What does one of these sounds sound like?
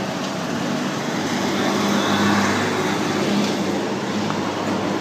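A heavy truck engine drones past nearby.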